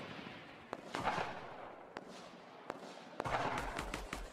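A rifle fires sharp, echoing shots.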